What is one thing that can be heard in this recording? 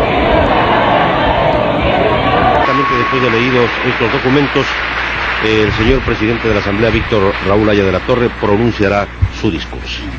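A crowd shouts and clamours in a large echoing hall.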